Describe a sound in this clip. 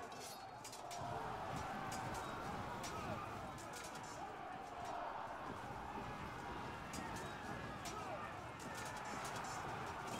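Horses' hooves thunder in a cavalry charge.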